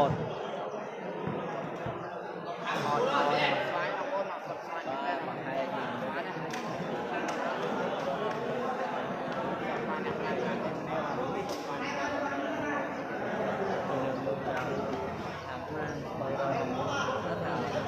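A ball is kicked with dull thuds.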